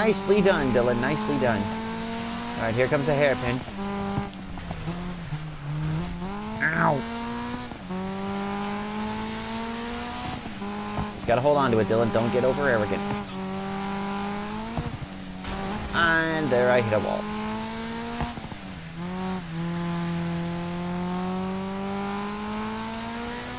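A rally car engine roars and revs, rising in pitch and dropping with each gear change.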